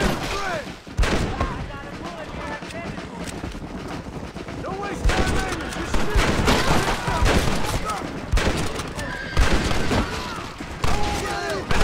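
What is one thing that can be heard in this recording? Gunshots crack loudly, one at a time.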